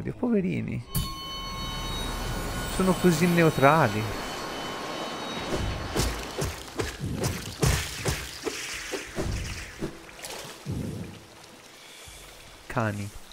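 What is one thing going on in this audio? A shimmering magical blast roars and rings.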